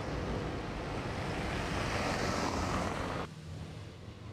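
Cars drive past on a cobbled street.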